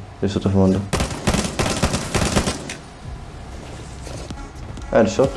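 A rifle fires several quick bursts of shots close by.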